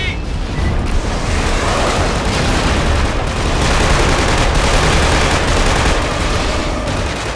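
A heavy machine gun fires long rapid bursts.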